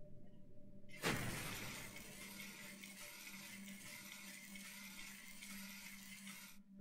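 A laser beam hisses and crackles steadily.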